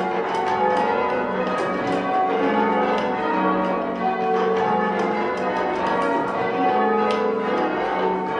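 Church bells ring out loudly in quick succession, overlapping and ringing on.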